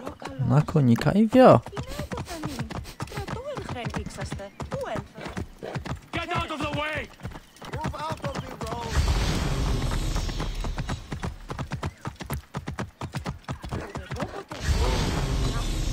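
A horse's hooves clop steadily on stone paving.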